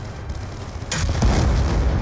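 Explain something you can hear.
A heavy launcher fires with a loud blast.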